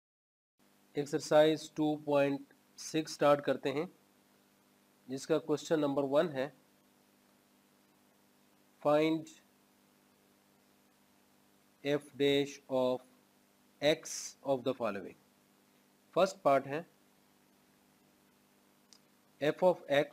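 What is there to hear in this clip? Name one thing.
A man speaks calmly and clearly into a close microphone, like a teacher explaining.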